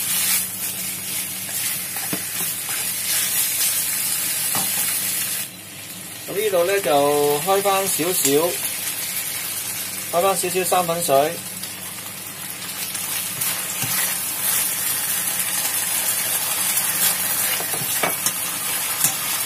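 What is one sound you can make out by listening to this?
A metal spatula scrapes and clatters against a wok.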